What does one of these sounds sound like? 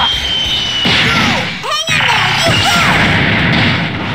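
An energy blast roars and whooshes.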